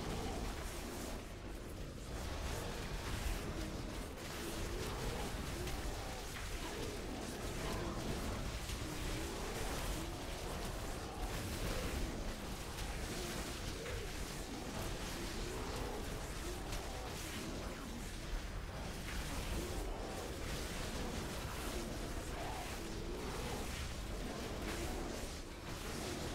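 Spells crackle and weapons clash in a fierce fantasy battle.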